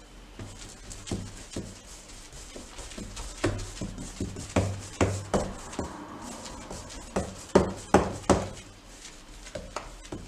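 A paintbrush swishes and taps against a wooden door.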